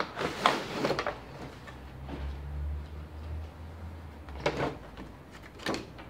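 Plastic film crinkles as it is pulled off a box.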